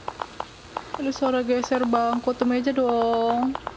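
A young woman speaks in a drawn-out voice close to a microphone.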